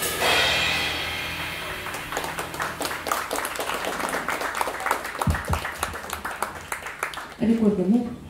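A drummer plays a fast rhythm on cymbals and drums.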